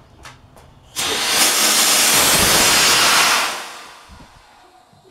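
A device fires with a loud, rushing blast that slowly fades away.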